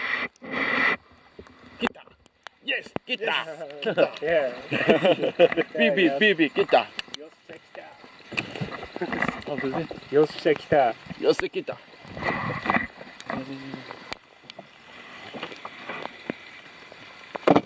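A fish thrashes and splashes at the water's surface.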